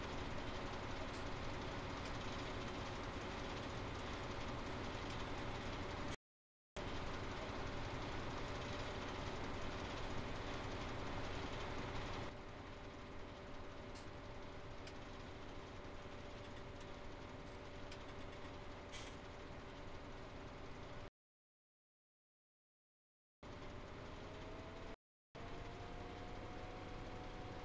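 A harvester engine hums steadily, cutting out briefly twice.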